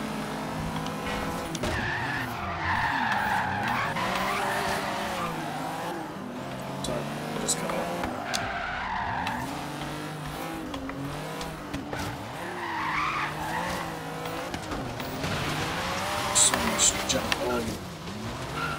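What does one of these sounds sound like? A car engine revs and whines up and down as a car drifts.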